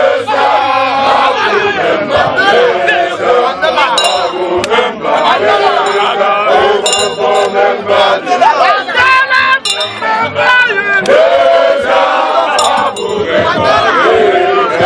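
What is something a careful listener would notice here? A crowd of men and women cheers and chants loudly outdoors.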